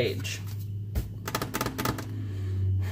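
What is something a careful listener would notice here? A sticker peels off a backing sheet.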